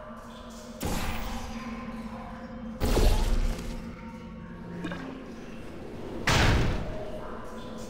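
A sci-fi energy gun fires with a loud whooshing zap.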